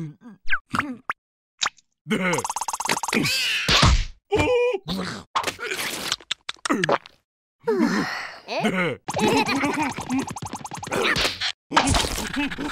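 Cartoon creatures babble and squeal in high, squeaky voices.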